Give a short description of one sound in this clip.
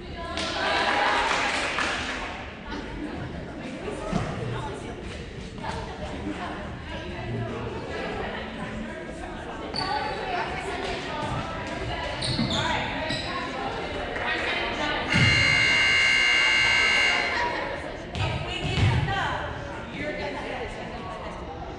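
A crowd of girls cheers and chatters in a large echoing gym.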